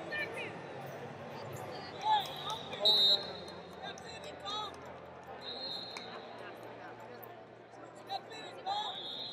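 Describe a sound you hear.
Spectators shout encouragement.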